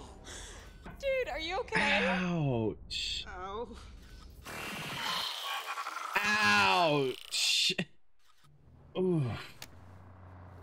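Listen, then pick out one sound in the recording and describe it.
A young man exclaims and talks loudly into a microphone, close by.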